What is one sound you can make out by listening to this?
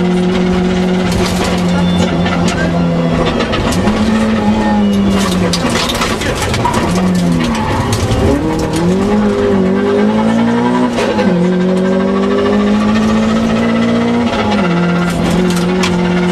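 Gravel and stones clatter against the underside of a car.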